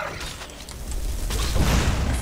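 A burst of fire roars loudly.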